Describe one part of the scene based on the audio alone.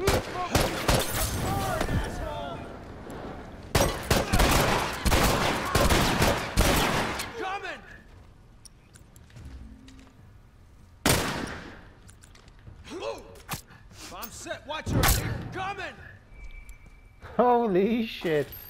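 Men grunt and cry out in pain.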